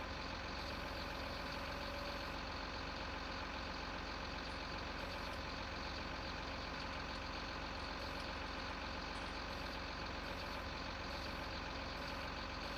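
A hydraulic crane arm whines as it moves.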